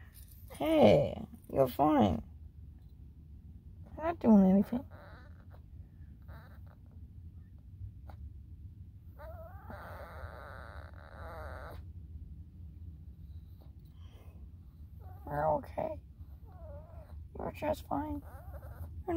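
A young woman talks softly and playfully up close, with bursts of high-pitched baby talk.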